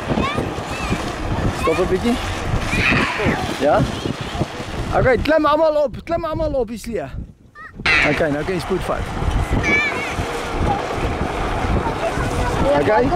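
A sled scrapes and rumbles over a dirt track.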